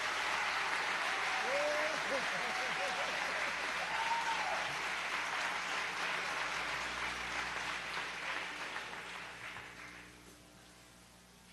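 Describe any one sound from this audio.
An audience applauds loudly in a large hall, then the applause fades away.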